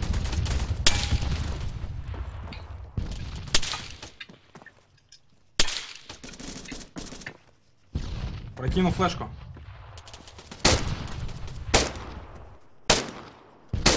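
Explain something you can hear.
Gunshots crack loudly, one at a time.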